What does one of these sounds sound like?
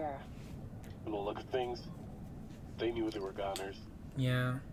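A young man speaks calmly, heard through a diving radio.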